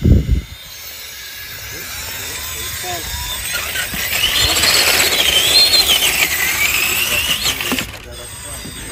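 A small electric motor whines.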